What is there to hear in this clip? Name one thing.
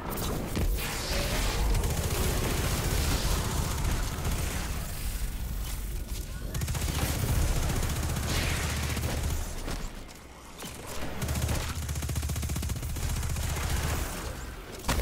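Heavy explosions boom.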